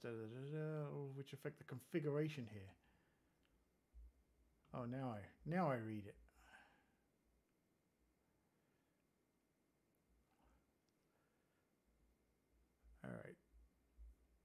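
A man talks calmly and closely into a microphone, with pauses.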